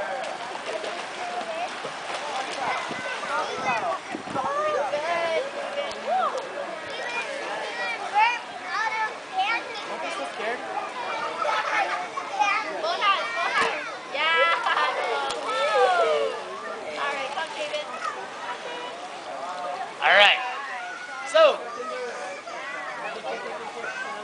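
Water splashes in an outdoor swimming pool.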